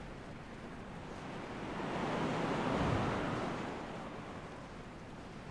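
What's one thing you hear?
Wind rushes as a game character glides through the air.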